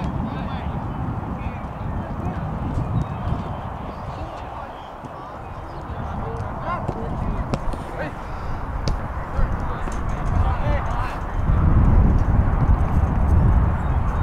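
A football thuds as players kick it on grass.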